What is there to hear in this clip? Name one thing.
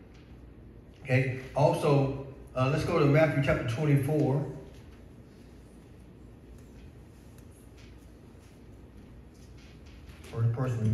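A man speaks with pauses through a microphone in an echoing hall.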